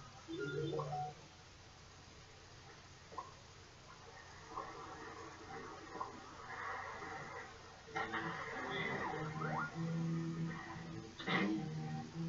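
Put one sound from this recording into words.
Video game music plays with bouncy tones and sound effects.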